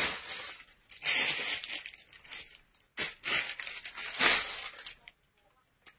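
Clothes rustle as they are handled.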